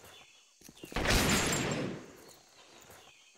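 A revolver fires a loud shot.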